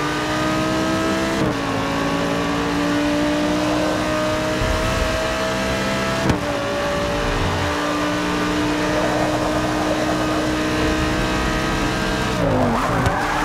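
A racing car engine roars at high revs, with quick gear changes.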